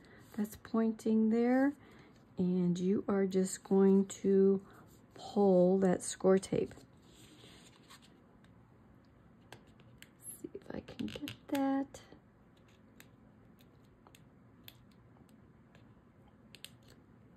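Fingers press and crease paper with soft rustles.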